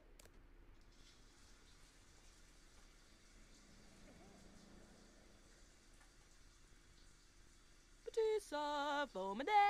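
A shower runs with a steady hiss of water.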